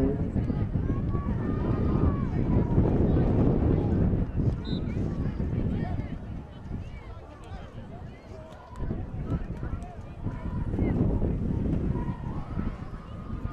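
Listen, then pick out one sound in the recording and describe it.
Wind blows across an open field outdoors.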